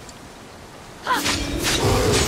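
A sword strikes a creature with a sharp hit.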